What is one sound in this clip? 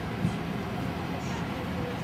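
An airliner cabin hums steadily.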